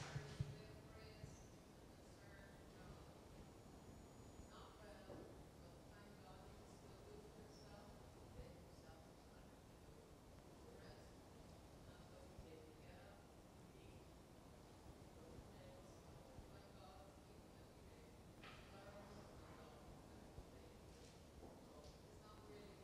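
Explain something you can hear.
A woman speaks calmly at a distance in a large echoing hall.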